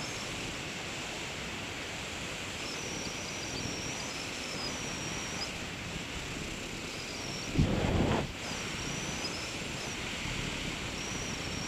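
Wind rushes steadily past, high up in open air, with a brief stronger gust.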